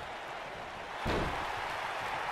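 A body thuds onto a wrestling mat.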